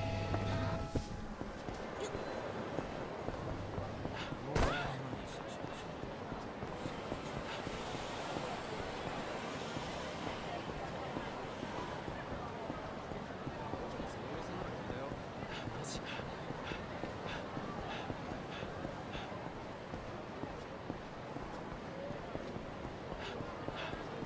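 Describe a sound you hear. A busy street hums with steady city noise.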